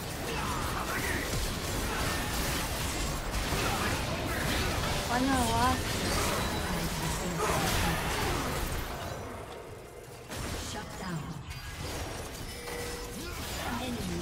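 Magic blasts and crackling explosions burst one after another.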